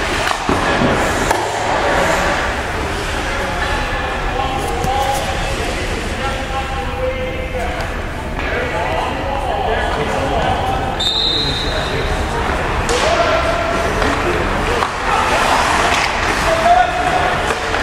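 Skates scrape and hiss on ice in a large echoing arena.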